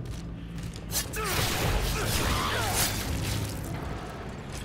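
A creature screeches loudly.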